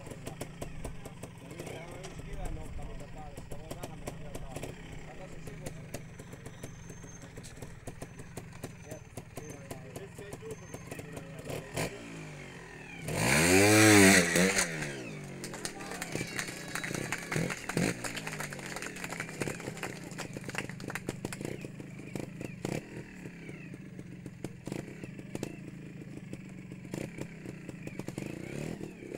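A motorcycle engine idles with a low, steady putter.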